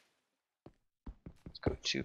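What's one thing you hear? A pickaxe taps repeatedly at a block of stone.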